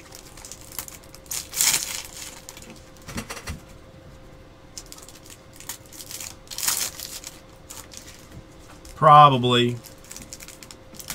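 Plastic card wrappers rustle and crinkle in someone's hands.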